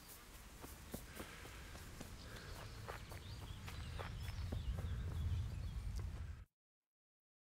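Leafy undergrowth rustles as someone pushes through it.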